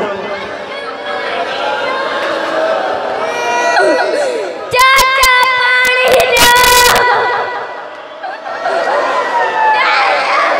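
A group of children chant together.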